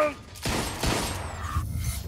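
A pistol fires with sharp bangs.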